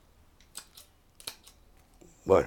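Pruning shears snip through small twigs.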